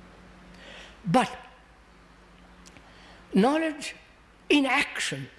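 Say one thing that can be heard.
An elderly man speaks slowly and deliberately into a close microphone, with long pauses.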